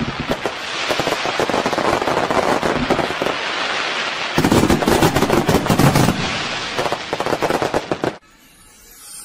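Fireworks crackle and pop in rapid bursts.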